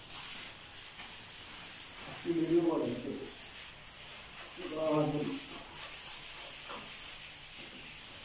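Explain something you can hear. Electrical wires rustle and scrape.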